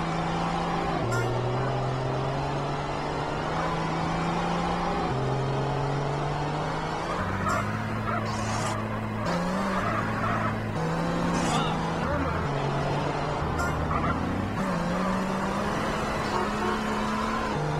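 A car engine roars steadily as a car speeds along a road.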